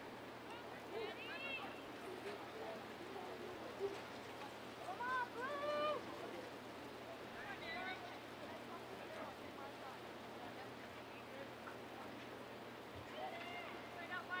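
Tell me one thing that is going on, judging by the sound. Young men and women shout loudly across an open field outdoors.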